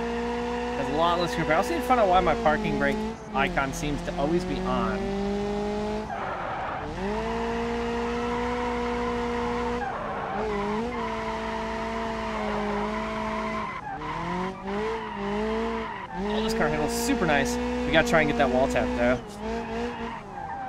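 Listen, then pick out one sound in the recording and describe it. Tyres screech as a car slides through bends.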